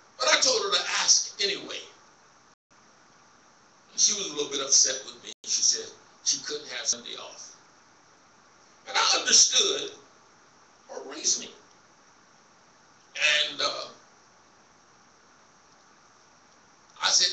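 A man preaches into a microphone in bursts, heard over a loudspeaker in a large room.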